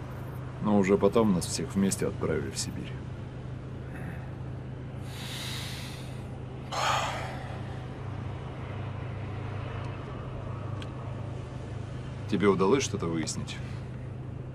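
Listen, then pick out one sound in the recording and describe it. A young man speaks calmly inside a car.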